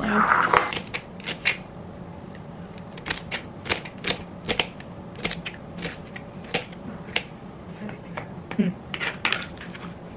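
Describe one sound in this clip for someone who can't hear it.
A knife chops through crisp celery on a cutting board in quick, sharp cuts.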